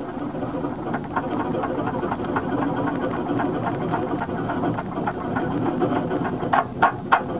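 A vehicle engine rumbles steadily up close.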